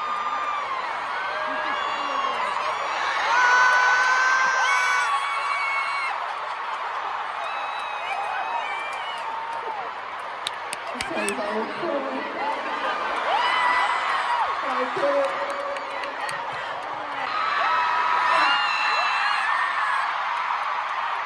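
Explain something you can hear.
A large crowd of young women screams and cheers in a huge echoing arena.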